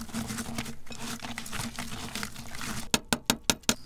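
Gloved hands squish and mix a wet food mixture in a glass bowl.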